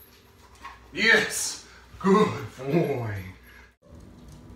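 A man speaks to a dog with animation, close by.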